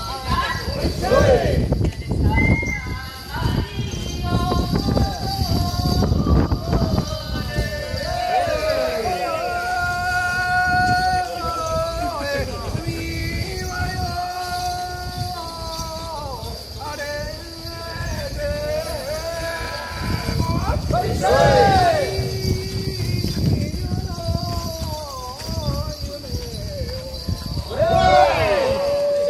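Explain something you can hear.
A crowd of men chant loudly in rhythm.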